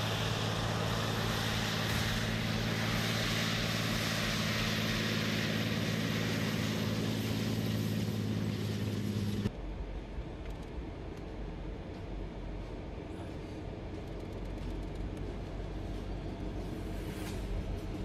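A tank engine roars loudly and steadily.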